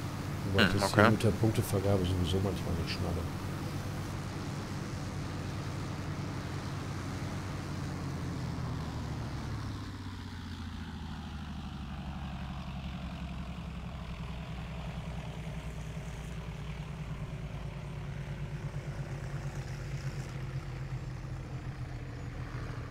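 A propeller plane's engines drone steadily, rising and falling in pitch.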